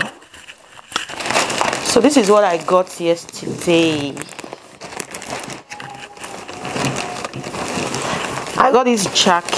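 A paper shopping bag rustles and crinkles.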